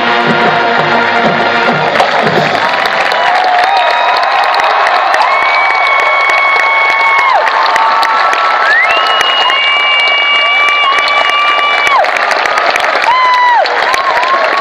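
A marching band plays loud brass chords outdoors in a large open stadium.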